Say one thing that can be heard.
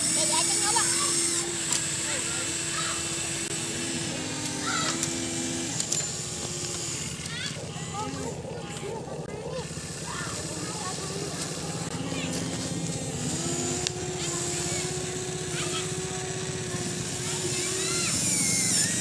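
The electric motors of a radio-controlled toy excavator whine in shifting pitches.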